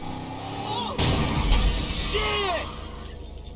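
A car crashes through a glass window with a loud smash.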